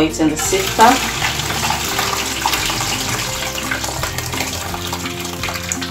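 Water pours and splashes into a metal colander.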